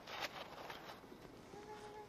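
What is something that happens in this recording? A shovel scrapes into gravelly soil.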